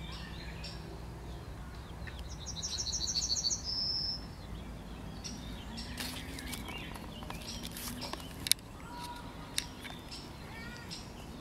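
Leaves rustle softly in a light breeze.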